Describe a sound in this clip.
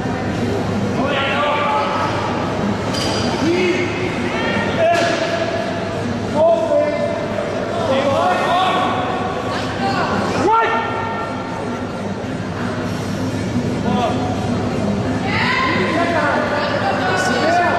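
Men shout loud encouragement.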